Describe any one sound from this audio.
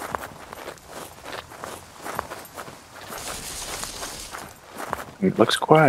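Footsteps crunch through dry grass and dirt.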